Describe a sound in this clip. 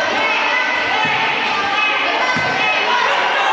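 A body thumps onto a wrestling mat.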